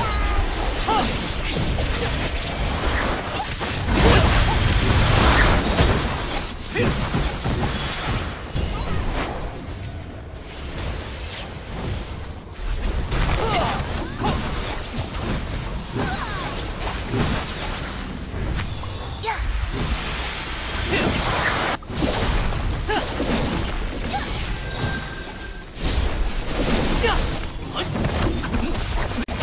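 Game spell blasts and magic impacts crackle and boom rapidly.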